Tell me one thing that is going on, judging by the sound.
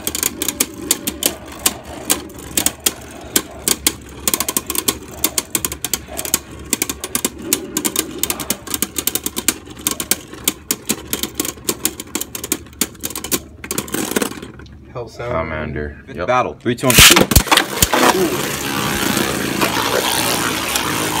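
Spinning tops whir and scrape steadily across a plastic dish.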